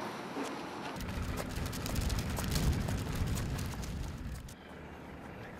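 A plastic bag rustles and crinkles in a man's hands.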